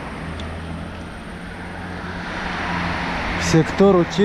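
A car approaches with its engine humming.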